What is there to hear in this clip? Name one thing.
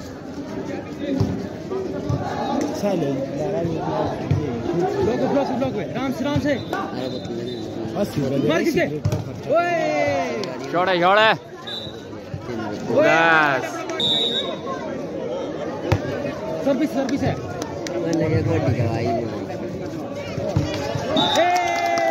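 A volleyball thumps off players' hands.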